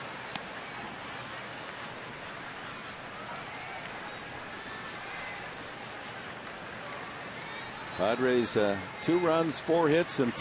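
A large crowd murmurs steadily in an open stadium.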